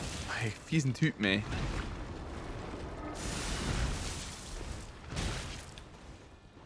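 A sword slashes and strikes a creature with heavy blows.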